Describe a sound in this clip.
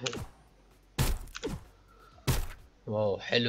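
A cartoon mallet strikes with a sharp thump.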